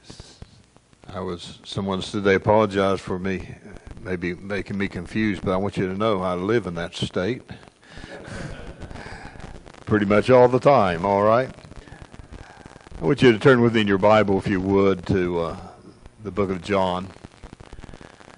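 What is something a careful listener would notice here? A man speaks slowly and earnestly through a microphone in an echoing hall.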